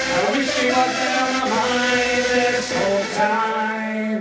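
A young man sings close into a microphone.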